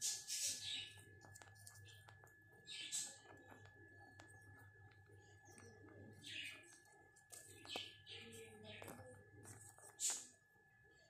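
Fingers press and crumble loose potting soil.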